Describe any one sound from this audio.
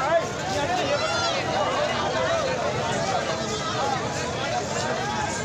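A crowd of men shout and talk loudly outdoors.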